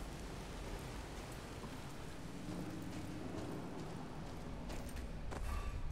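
Footsteps crunch on dirt.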